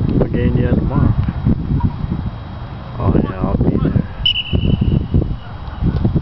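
Young men talk and shout to each other outdoors.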